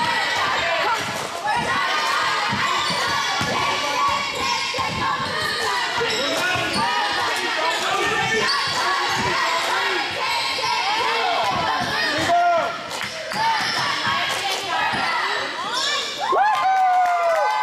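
Young players and spectators shout and call out in a large echoing gym.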